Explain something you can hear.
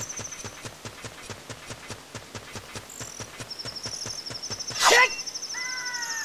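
Quick footsteps tap on a stone floor.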